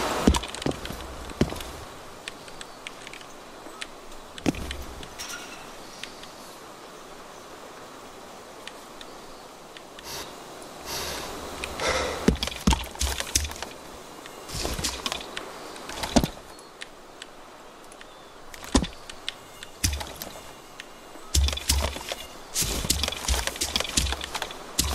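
Footsteps thud over grass and dirt.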